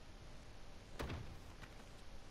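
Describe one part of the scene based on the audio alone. A kick lands with a heavy thud.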